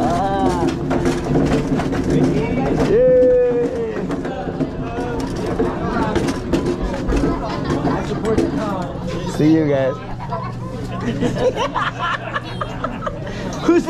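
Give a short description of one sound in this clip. A crowd of men, women and children chatters and calls out nearby in a busy room.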